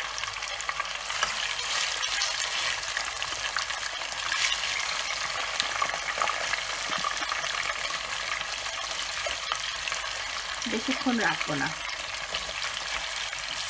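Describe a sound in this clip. Oil sizzles steadily around frying fish.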